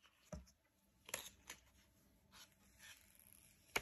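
A paper flap peels open.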